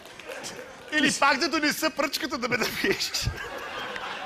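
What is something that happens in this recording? A middle-aged man talks and laughs with animation close by.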